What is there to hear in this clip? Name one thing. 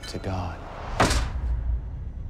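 A loud thud lands on a hard floor.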